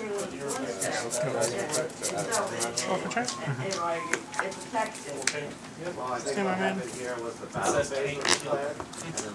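Playing cards riffle and tap softly on a table.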